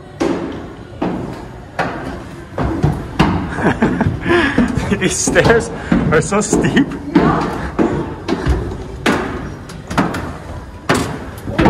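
Footsteps thud on wooden stairs, climbing steadily.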